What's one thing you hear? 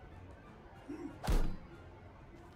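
A sharp thud sounds.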